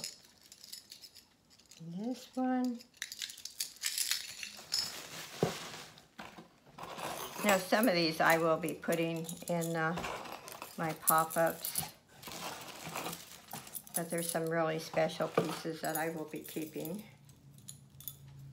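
Metal beads clink and rattle in a woman's hands.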